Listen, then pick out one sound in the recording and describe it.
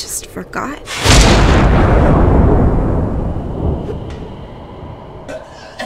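A loud rushing whoosh swells and slowly fades.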